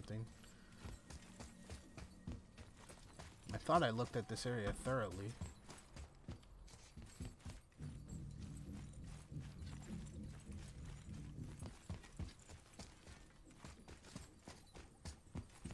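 Heavy footsteps thud steadily on hard ground.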